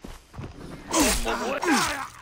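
A knife stabs into flesh.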